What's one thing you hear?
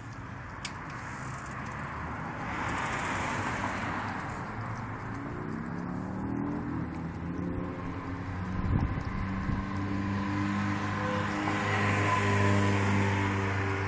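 A large dog chews and gnaws on raw chicken.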